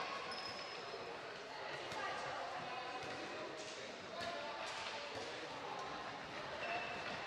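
Young women players shout to each other.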